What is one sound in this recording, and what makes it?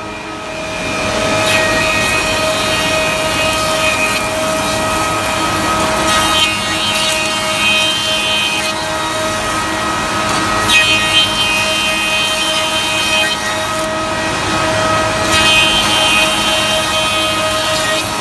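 Wood is planed with a loud rushing roar as boards feed through the machine.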